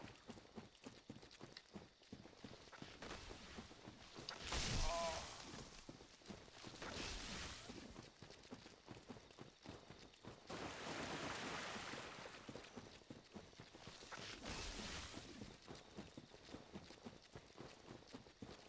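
Armoured footsteps clank steadily on the ground.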